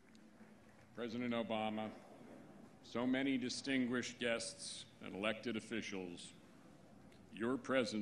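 A man speaks calmly and formally through a microphone and loudspeakers.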